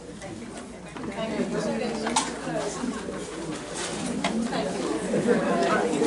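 Several elderly women talk at once with animation.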